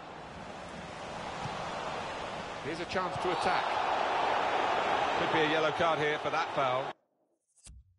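A stadium crowd roars and cheers loudly.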